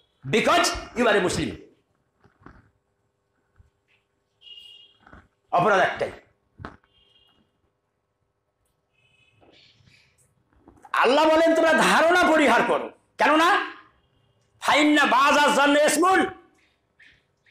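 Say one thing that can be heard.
An elderly man preaches forcefully through a microphone, in bursts with pauses between.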